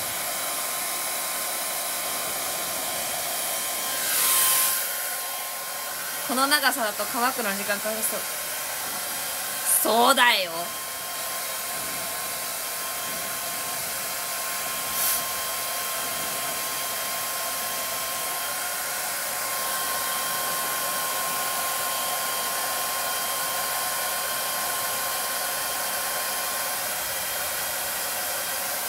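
A hair dryer blows with a steady whooshing hum.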